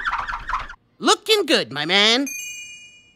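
A young boy laughs heartily.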